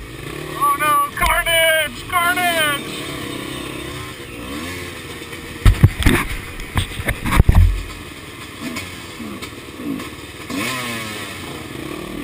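A dirt bike engine revs up sharply several times.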